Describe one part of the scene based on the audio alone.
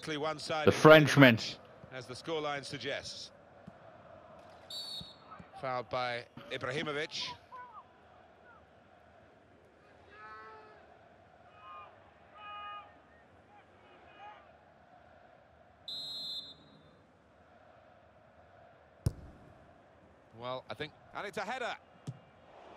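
A large stadium crowd murmurs and chants in the distance.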